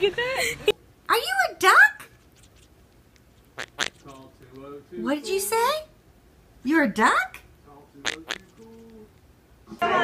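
A parrot squawks and chatters close by.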